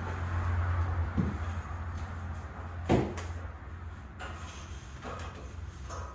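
Metal clanks against a metal frame overhead.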